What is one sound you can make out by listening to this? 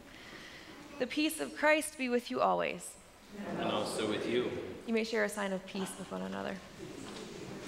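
A young woman reads out calmly.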